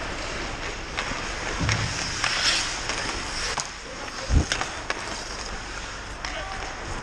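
Hockey sticks click sharply against a puck in a large echoing rink.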